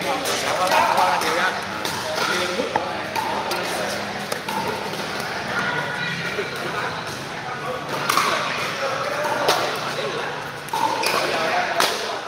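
Paddles hit a plastic ball with sharp pops in a large echoing hall.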